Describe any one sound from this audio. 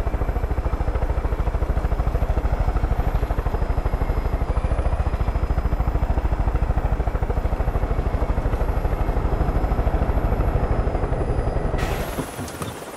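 A helicopter's rotor thumps loudly and steadily, then cuts off.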